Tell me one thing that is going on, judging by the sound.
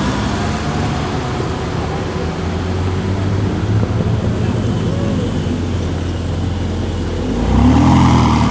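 A sports car engine idles with a deep rumble close by.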